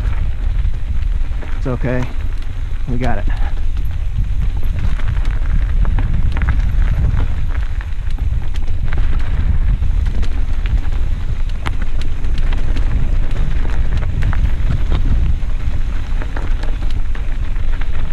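Mountain bike tyres roll and rattle over a dirt trail.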